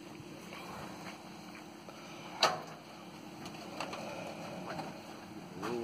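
Objects clatter and thud into a pickup truck bed.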